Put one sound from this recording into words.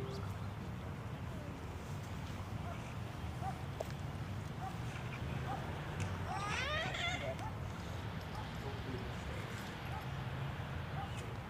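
A piano plays softly outdoors.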